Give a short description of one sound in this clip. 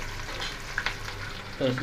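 Oil sizzles as food fries in a pan.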